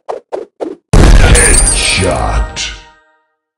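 A cartoon zombie is knocked down with a thud.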